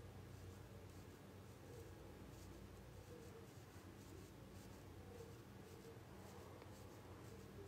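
A pencil scratches softly on a rubbery surface.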